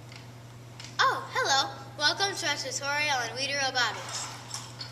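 A young girl speaks clearly and with animation, close by.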